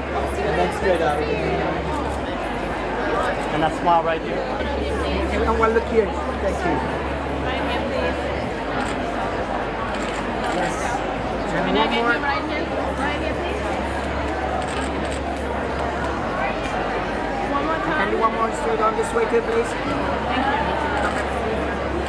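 A crowd murmurs and chatters in the background.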